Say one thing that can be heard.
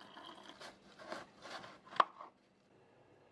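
A knife cuts through a watermelon with crisp cracks.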